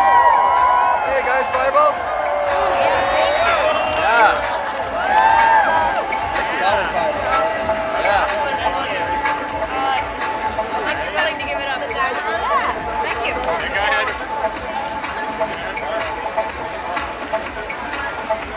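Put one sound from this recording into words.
A crowd cheers and whoops outdoors.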